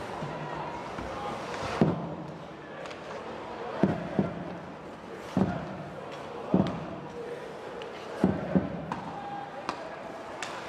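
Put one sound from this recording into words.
Skate blades scrape and hiss on ice.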